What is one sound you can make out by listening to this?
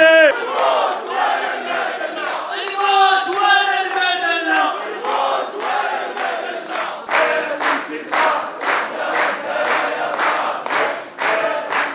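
A crowd claps along in a steady rhythm.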